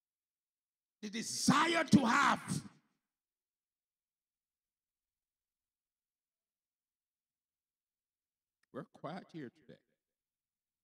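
A man preaches with animation into a microphone, with long pauses.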